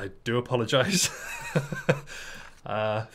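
A young man laughs close to a microphone.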